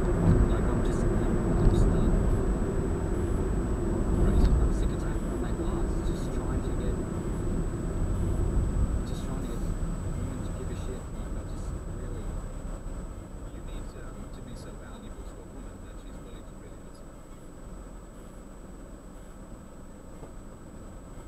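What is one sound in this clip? A car's engine and tyres rumble steadily on a road, slowly growing quieter as the car slows.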